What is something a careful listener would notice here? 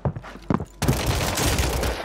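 Footsteps thud on wooden stairs.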